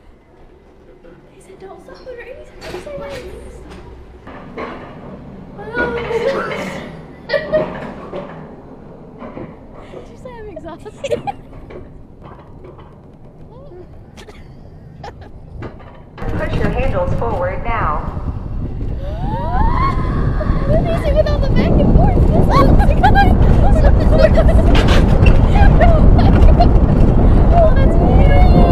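A coaster sled rumbles along its track.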